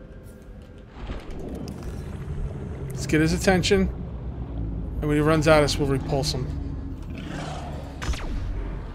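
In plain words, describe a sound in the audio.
Water rushes and bubbles around a swimming diver.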